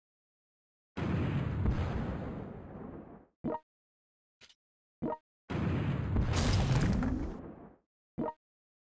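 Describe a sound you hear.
Heavy guns fire with a deep, rumbling blast that slowly fades.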